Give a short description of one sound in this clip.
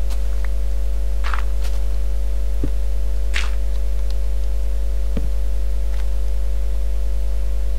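Dirt blocks thud softly as they are broken and placed.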